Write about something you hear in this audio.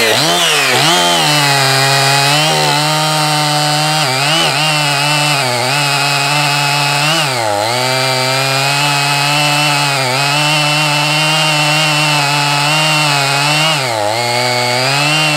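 A chainsaw bites into a log with a steady, straining drone.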